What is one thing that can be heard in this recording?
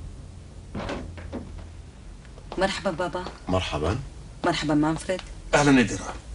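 Footsteps tread across a wooden floor.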